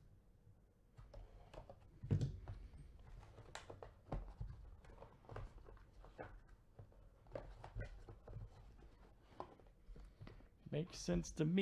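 Cardboard boxes knock and slide against each other.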